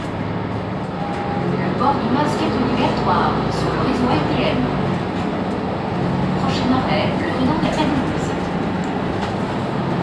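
An elderly man talks nearby.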